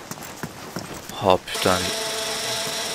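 A wooden cabinet door creaks open.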